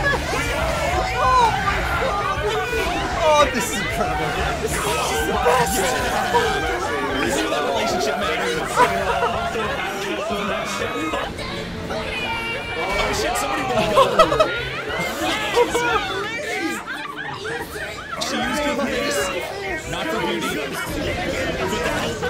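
Several young men shout and laugh excitedly over microphones.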